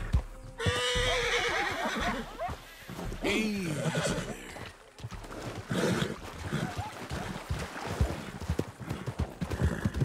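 Horse hooves clop steadily on gravel and dirt.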